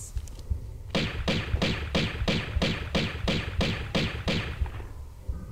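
Pistol shots fire in a fast, steady burst.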